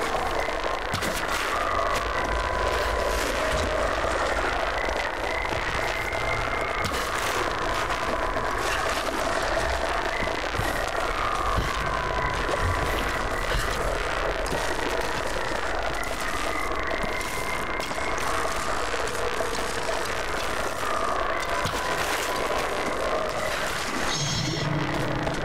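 Water rushes and churns steadily.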